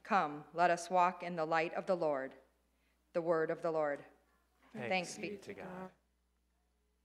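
A woman reads out through a microphone.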